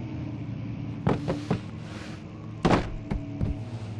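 A wooden crate thumps and clatters as it is thrown.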